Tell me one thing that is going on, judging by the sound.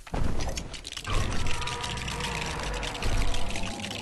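Plastic pieces clatter and rattle.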